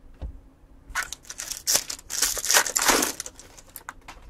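A plastic wrapper crinkles and tears open.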